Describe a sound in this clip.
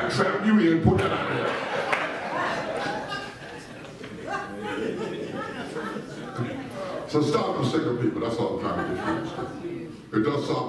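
A man preaches with animation through a loudspeaker in a large echoing hall.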